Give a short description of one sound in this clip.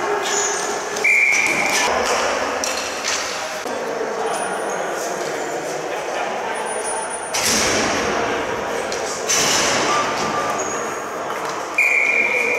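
Plastic sticks clack and a ball bounces on a hard floor in a large echoing hall.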